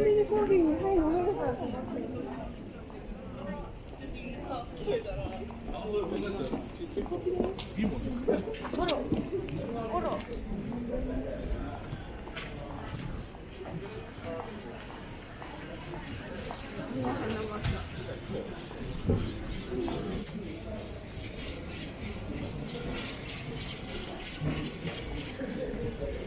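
Voices of a crowd of people chatter nearby outdoors.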